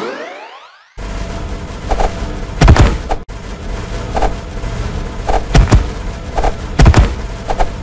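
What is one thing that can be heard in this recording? Swords clash and strike repeatedly in a busy game battle.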